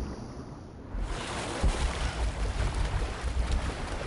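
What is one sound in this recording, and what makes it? A waterfall roars steadily close by.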